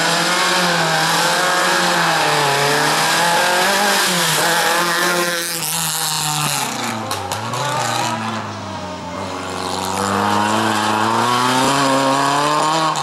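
A rally car engine revs hard, rising and falling in pitch as the car shifts gears.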